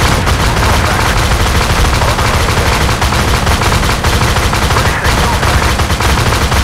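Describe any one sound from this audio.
Heavy gunfire rattles rapidly and without pause.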